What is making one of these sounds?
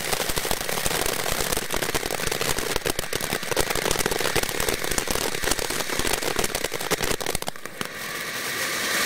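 A fountain firework hisses and crackles with rapid pops.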